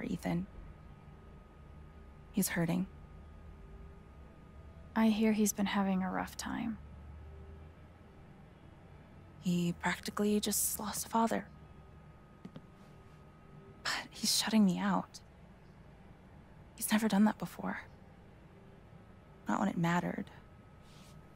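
A woman speaks calmly and sadly.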